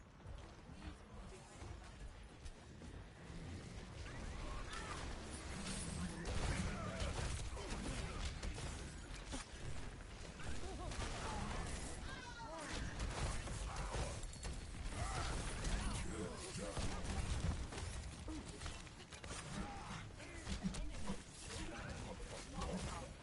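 Energy weapons fire in a video game.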